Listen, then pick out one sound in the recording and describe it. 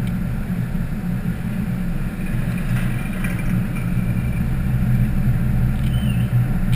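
A car engine hums steadily from inside the cabin as the car drives along.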